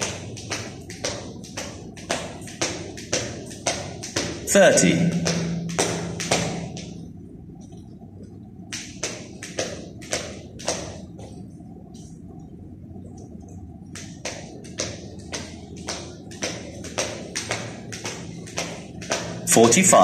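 A skipping rope slaps the hard floor in a quick, steady rhythm, with a pause partway through.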